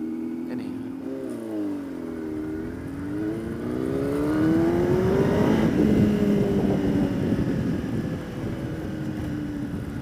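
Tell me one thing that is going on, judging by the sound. A motorcycle engine hums and revs up and down as the bike rides.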